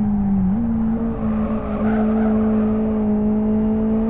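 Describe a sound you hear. Tyres screech through a corner.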